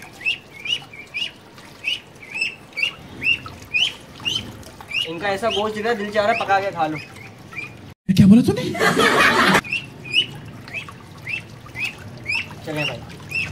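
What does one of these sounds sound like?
Water splashes in a tub.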